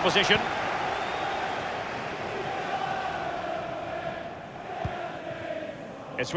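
A large stadium crowd roars and chants.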